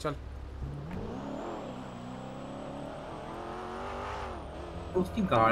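A car engine revs and accelerates.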